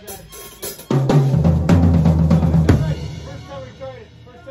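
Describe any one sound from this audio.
Drums and cymbals crash and ring out.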